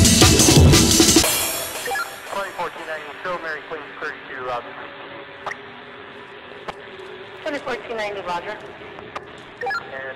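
A vinyl record is scratched back and forth on a turntable in quick bursts.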